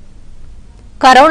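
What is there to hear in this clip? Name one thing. A young woman speaks clearly into a microphone, reading out.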